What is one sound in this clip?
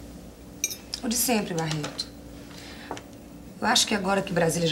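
A young woman speaks quietly and hesitantly.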